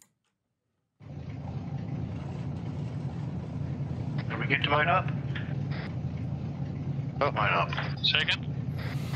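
A truck engine starts and idles with a steady low rumble.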